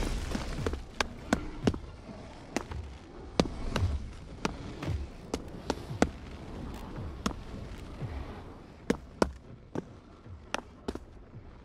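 Footsteps thud on a wooden floor at an even pace.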